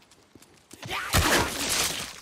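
A heavy blow strikes with a loud thud.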